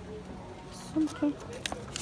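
A paper price tag rustles between fingers.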